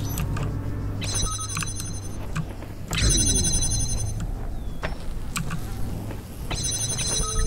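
A handheld electronic device gives off bright, shimmering tones in short bursts.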